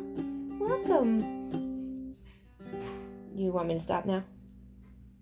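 Guitar strings are plucked, ringing out in a few short runs of notes.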